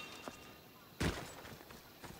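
A blow lands with a heavy thud.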